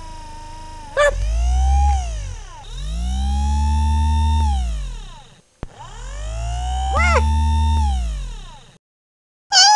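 A robotic arm whirs and hums as its motors speed up and slow down.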